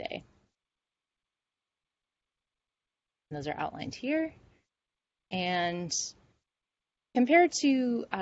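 A woman speaks calmly through an online call, in short phrases with pauses.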